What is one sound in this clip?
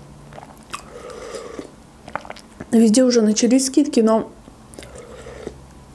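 A young woman slurps soup from a spoon.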